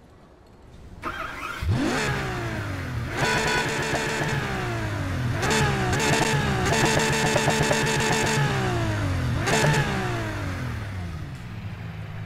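A sports car engine revs hard and roars, rising and falling in pitch.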